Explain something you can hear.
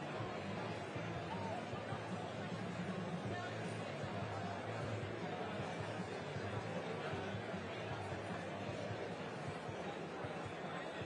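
A large audience chatters loudly in an echoing hall.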